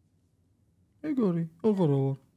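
A man speaks close to a microphone.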